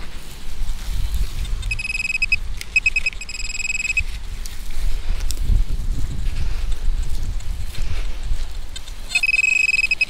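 Hands scrape and rustle through loose soil close by.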